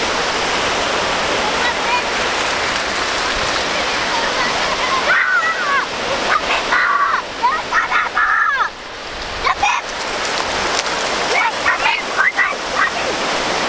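Waves wash steadily onto the shore outdoors.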